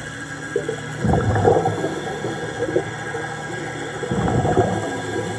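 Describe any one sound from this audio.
Scuba bubbles gurgle and rumble in bursts as a diver breathes out underwater.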